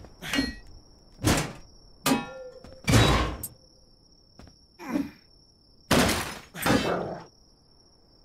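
Heavy blows strike and smash an object.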